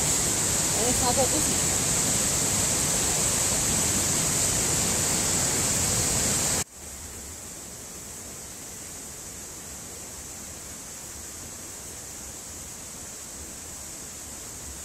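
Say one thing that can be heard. A mountain stream rushes steadily outdoors.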